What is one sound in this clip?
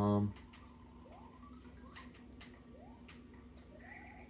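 Short rising chirps from a video game sound as a character jumps.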